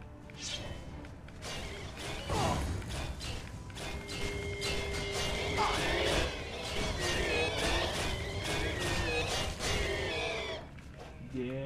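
A ghostly creature wails and shrieks eerily.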